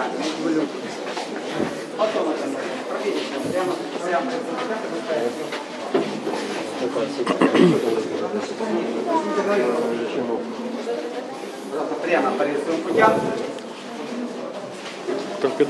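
Adults and children chatter close by in a crowd.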